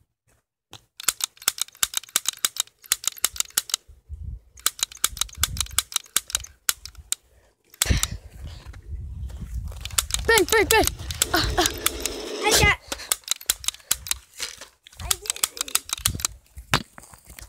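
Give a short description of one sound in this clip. A toy gun clicks rapidly, over and over.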